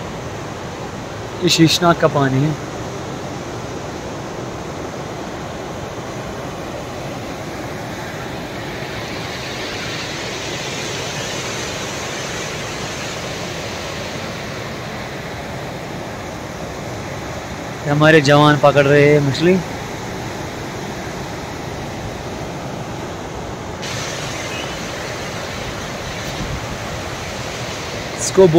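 A fast river rushes and churns over rocks nearby.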